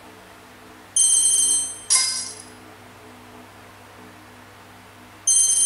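A tablet game plays short, bright chiming sound effects.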